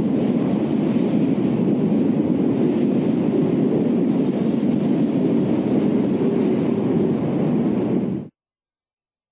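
Strong wind roars steadily in a storm.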